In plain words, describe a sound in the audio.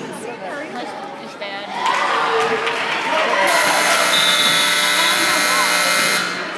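Spectators shout and cheer, echoing in a large hall.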